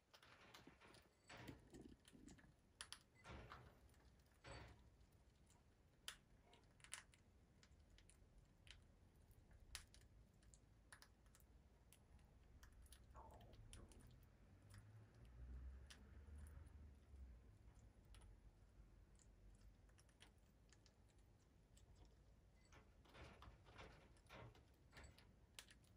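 A small parrot's beak and claws tap and click on a wooden perch.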